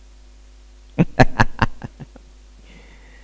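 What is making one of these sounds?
A man laughs heartily through a microphone.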